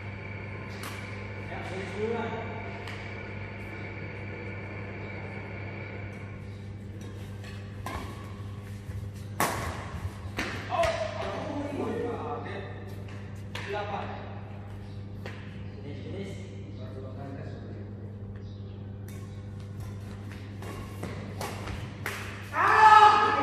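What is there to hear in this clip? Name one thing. Badminton rackets hit a shuttlecock again and again with sharp taps.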